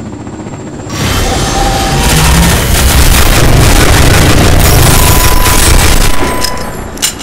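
A gun fires rapid bursts of shots in an echoing room.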